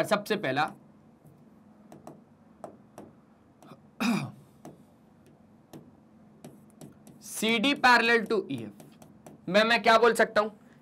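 A young man speaks through a microphone in bursts, with pauses between them, explaining calmly.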